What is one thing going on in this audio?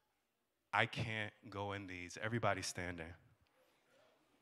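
A man speaks with energy through a microphone in a large hall.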